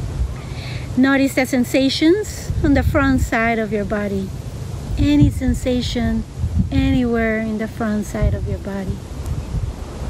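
A woman speaks calmly and softly, close by, with a melodic, sing-song voice.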